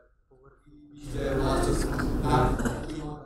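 Several men and women talk at once, close by.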